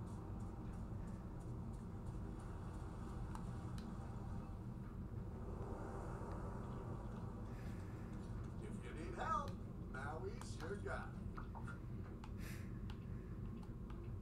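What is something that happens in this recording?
A video game's sound effects play quietly from a television.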